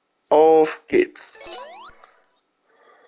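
A bright video game jingle plays with rising chimes.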